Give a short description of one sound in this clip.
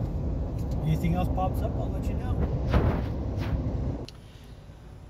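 A car's engine and tyres rumble steadily from inside the car.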